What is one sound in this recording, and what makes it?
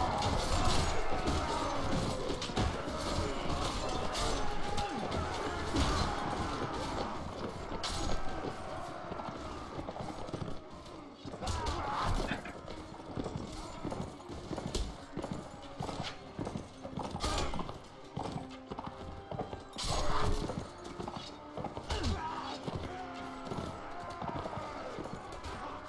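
Horse hooves thud rapidly on snow.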